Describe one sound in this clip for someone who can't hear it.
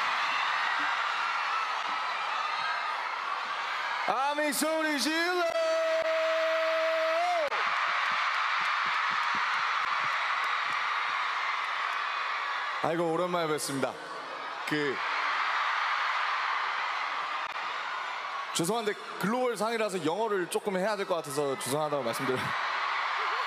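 A large crowd screams and cheers loudly in a big arena.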